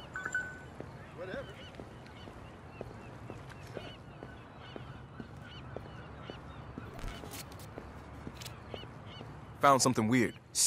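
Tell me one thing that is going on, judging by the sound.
Footsteps walk at a steady pace on pavement.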